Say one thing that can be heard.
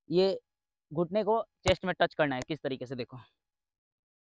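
A young man speaks up close with animation.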